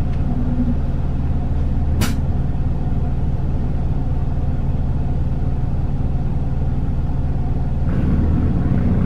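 A diesel city bus engine idles.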